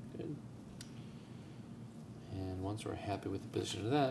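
A metal needle holder clicks softly.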